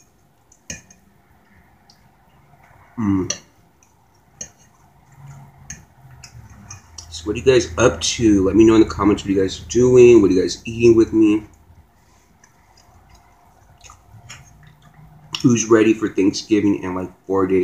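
A fork scrapes and clicks on a plate.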